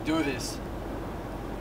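A young man speaks briefly inside a car.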